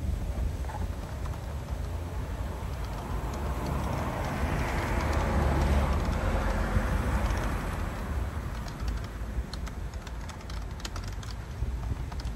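Wind blows outdoors, rumbling into the microphone.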